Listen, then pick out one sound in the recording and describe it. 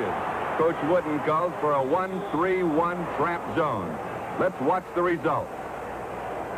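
A man shouts nearby.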